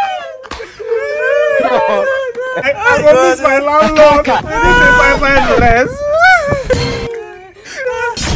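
A young man wails and sobs loudly close by.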